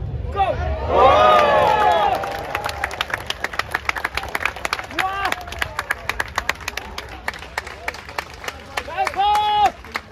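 A crowd of spectators claps close by.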